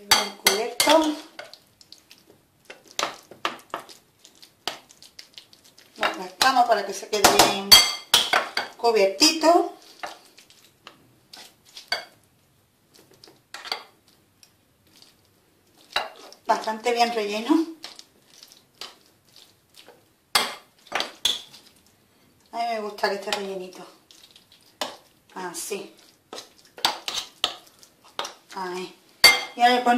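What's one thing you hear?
A spoon scrapes and clinks against a glass bowl.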